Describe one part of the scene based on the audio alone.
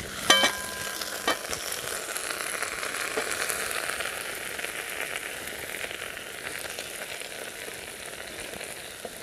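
A wooden spoon stirs and scrapes inside a metal pot.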